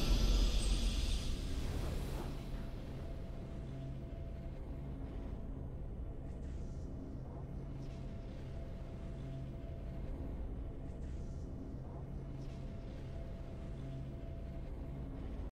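Swelling fanfare music rings out and fades into a low, calm repeating melody.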